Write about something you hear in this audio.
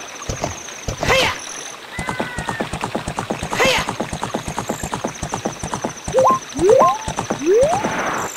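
A horse gallops with quick, rhythmic hoofbeats.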